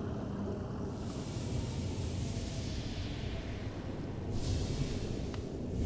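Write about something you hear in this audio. A shimmering magical whoosh swells up.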